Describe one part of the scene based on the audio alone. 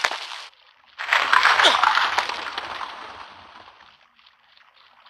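A body scrapes and slides loudly down rough stone, then fades.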